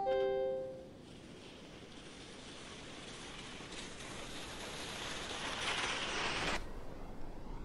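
Skis rush and hiss down an icy track, growing louder.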